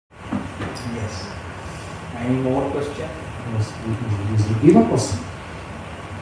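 A man speaks calmly into a microphone, heard through a loudspeaker.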